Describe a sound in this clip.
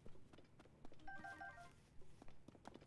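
A short bright chime rings several times.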